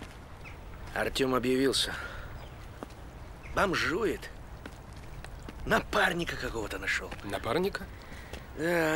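A young man speaks calmly outdoors.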